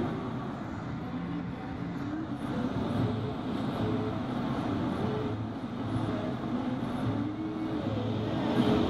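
A woman talks nearby inside the car.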